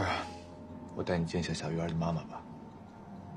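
A young man speaks calmly and softly.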